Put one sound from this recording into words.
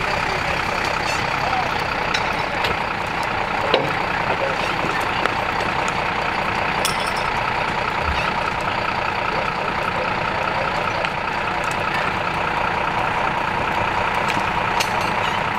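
A house fire roars and crackles steadily.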